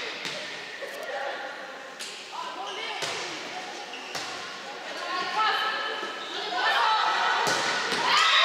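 Women players shout and call out to each other across the court.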